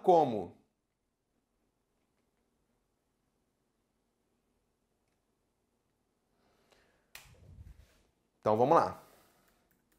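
A man speaks clearly into a close microphone, in short bursts with long pauses.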